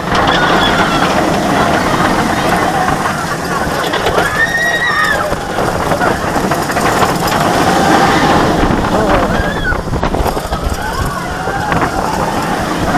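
A roller coaster train rattles and rumbles along its track.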